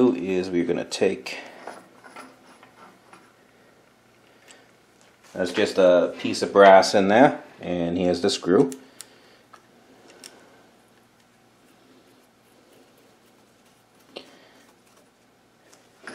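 Small metal parts click and clink together close by.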